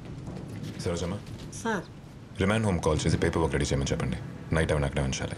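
A man speaks to a woman.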